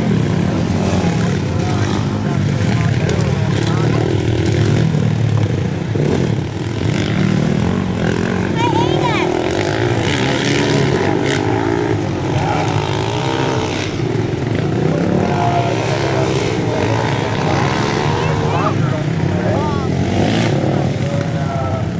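Dirt bike engines rev and whine as riders race around a track.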